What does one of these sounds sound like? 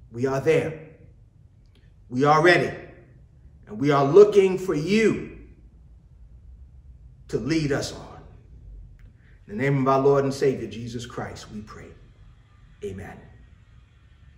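A man speaks slowly and solemnly into a microphone, with pauses, in a room with a slight echo.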